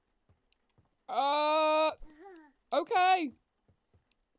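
A young woman lets out a loud, drawn-out cry of surprise.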